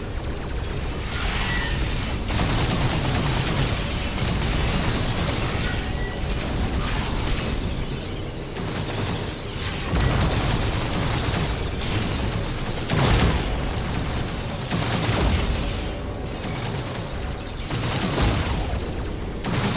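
Explosions burst and crackle in a video game.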